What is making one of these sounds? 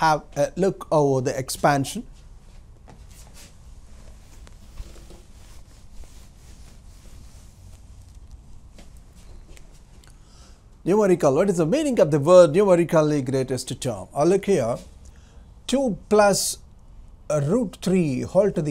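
A middle-aged man speaks calmly and clearly into a close microphone, explaining.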